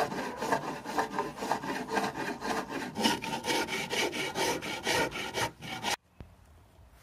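A sanding block rasps back and forth over wood in quick, rhythmic strokes.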